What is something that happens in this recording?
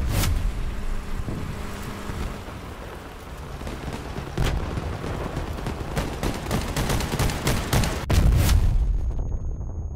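Explosions and gunfire bang in bursts.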